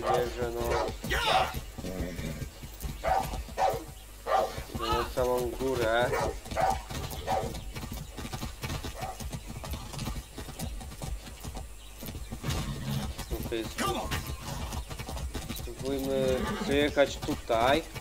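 A horse's hooves thud steadily on a dirt path.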